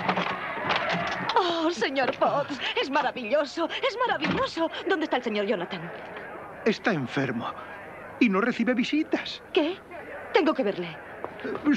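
A woman speaks excitedly.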